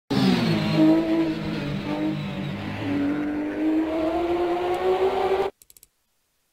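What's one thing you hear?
A race car engine roars and whines as the car speeds away.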